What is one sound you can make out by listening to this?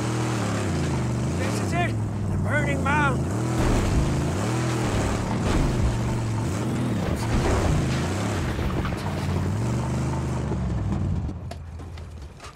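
Tyres crunch over dirt and rocks.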